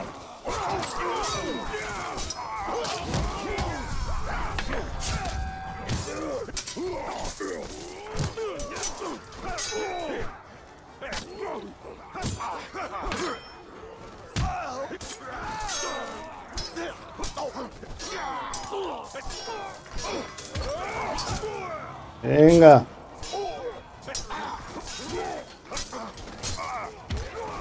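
Creatures grunt and snarl throughout a fight.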